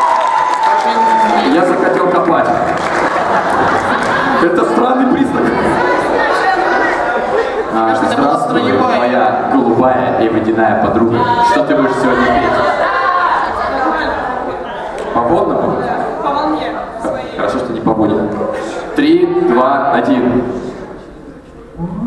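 A young man speaks with animation into a microphone over loudspeakers in a large hall.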